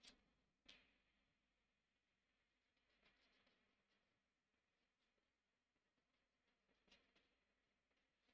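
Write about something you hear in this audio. A marker scratches softly on paper.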